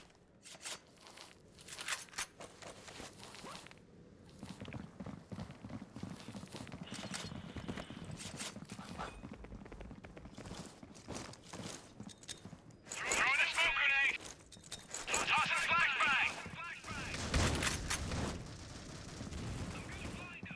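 Footsteps tap quickly on stone pavement.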